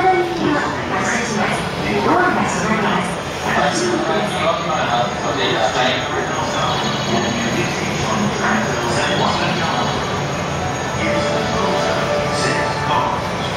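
An electric train hums steadily as it slowly rolls in.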